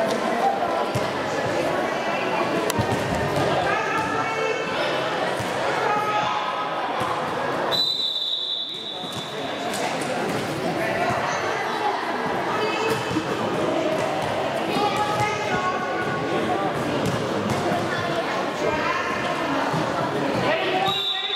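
Sneakers squeak sharply on the hall floor.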